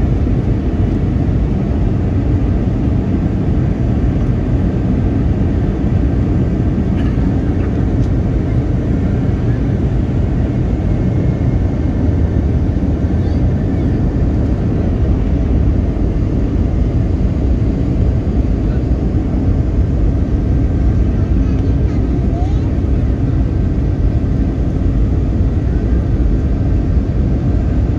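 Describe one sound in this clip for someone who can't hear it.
Jet engines roar steadily in a deep, constant drone inside an airliner cabin.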